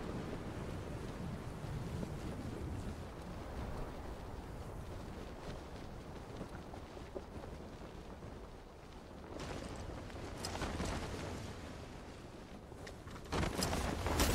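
Wind rushes steadily past during a parachute descent in a video game.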